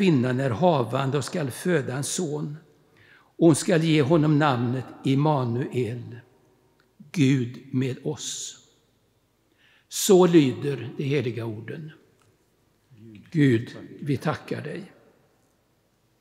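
An elderly man speaks calmly into a microphone in a large echoing hall, with pauses.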